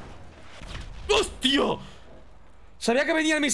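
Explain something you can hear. A young man exclaims loudly with animation into a close microphone.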